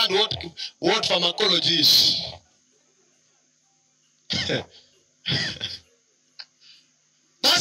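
A man preaches loudly through a microphone, in bursts with pauses.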